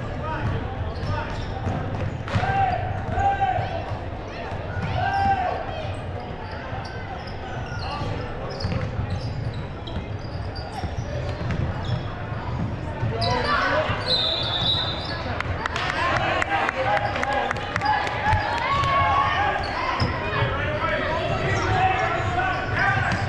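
A crowd of spectators chatters and cheers.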